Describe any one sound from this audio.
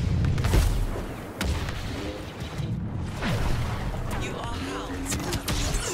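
A lightsaber hums and swishes through the air.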